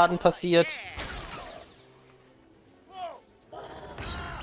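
Short bright electronic game effects chime and sweep.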